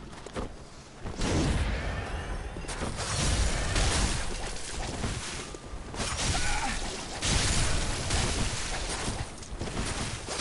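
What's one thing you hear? A blade swings and slashes with heavy whooshes.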